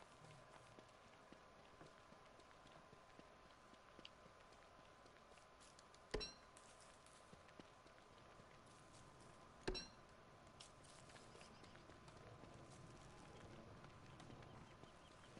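Soft footsteps patter steadily on dirt.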